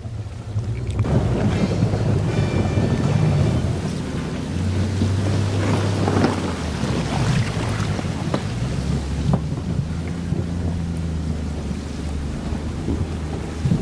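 Wind gusts and rumbles across the recording.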